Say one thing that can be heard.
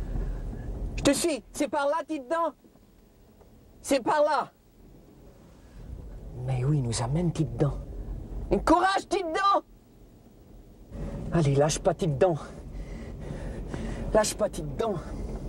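A man talks calmly from inside a car.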